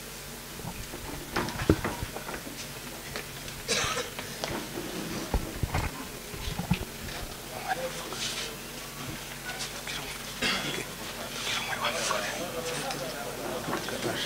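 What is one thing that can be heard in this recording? Men murmur and talk quietly in the background.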